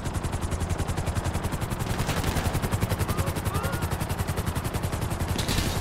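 A helicopter's rotor blades chop rapidly and steadily.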